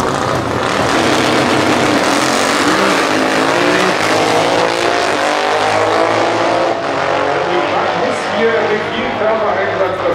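Motorcycle engines roar as they speed off down the track and fade into the distance.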